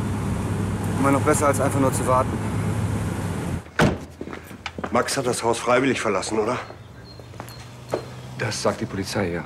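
A younger man speaks calmly close by.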